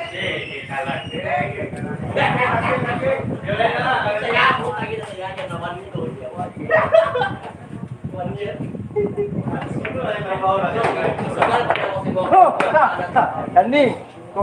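Several men and women chatter and call out nearby.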